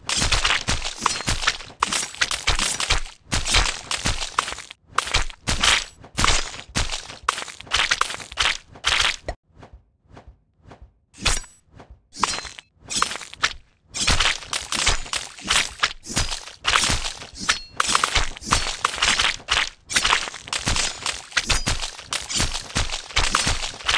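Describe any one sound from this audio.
A knife chops quickly through fruit.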